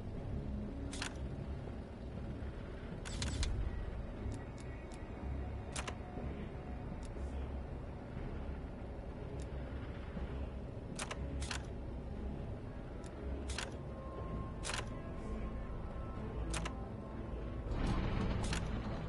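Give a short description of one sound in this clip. Short sharp menu clicks sound now and then.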